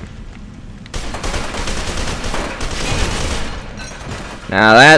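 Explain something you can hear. An assault rifle fires bursts.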